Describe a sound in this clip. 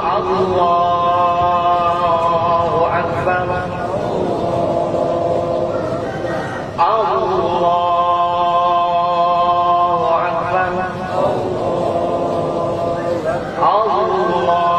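A man chants in long, drawn-out phrases through a loudspeaker outdoors.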